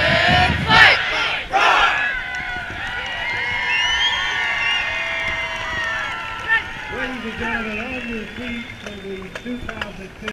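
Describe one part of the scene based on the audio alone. A large crowd murmurs and cheers in the stands.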